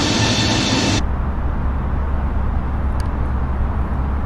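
A low, muffled engine hum drones steadily inside an aircraft cabin.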